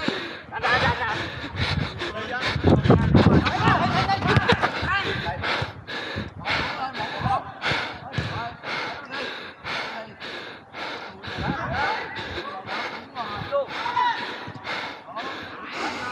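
Footsteps thud quickly and steadily on artificial turf as a player runs.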